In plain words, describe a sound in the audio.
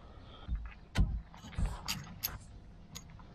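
Metal parts clink and knock as they are handled.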